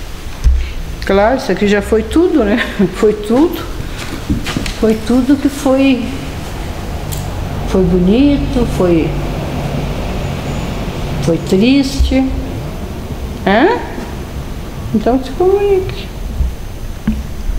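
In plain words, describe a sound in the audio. A middle-aged woman speaks in a hushed, tense voice close by.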